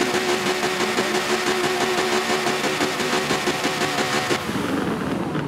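A racing car engine roars loudly at high revs.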